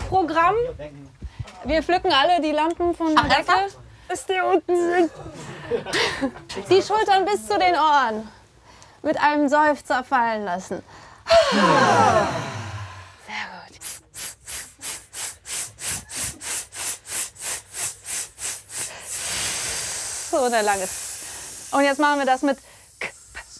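A group of men and women sing together in harmony into a microphone.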